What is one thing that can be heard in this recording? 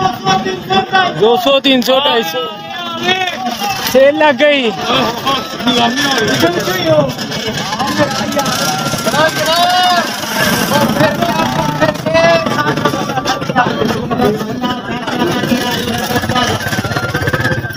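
A busy crowd murmurs outdoors in a street.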